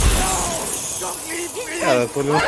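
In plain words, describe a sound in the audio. A young man speaks into a microphone with animation.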